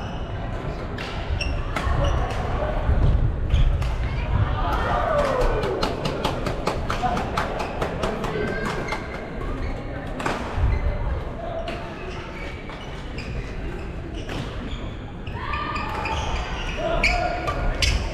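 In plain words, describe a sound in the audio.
Shuttlecocks are struck with sharp pops of rackets in a large echoing hall.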